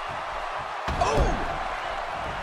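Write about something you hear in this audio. A heavy body slams onto a wrestling ring mat.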